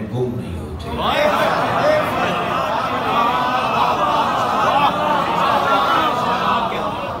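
A crowd of men chants and calls out in unison.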